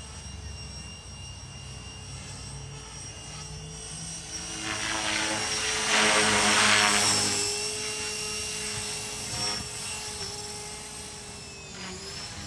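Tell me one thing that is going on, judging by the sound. A model helicopter's rotor whines steadily overhead, growing louder as it swoops close and then fading as it climbs away.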